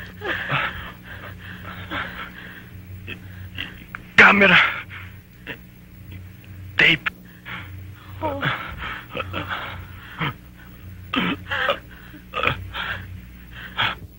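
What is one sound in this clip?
A young man speaks in a strained, breathless voice, close by.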